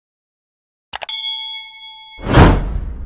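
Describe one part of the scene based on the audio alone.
A small bell chimes.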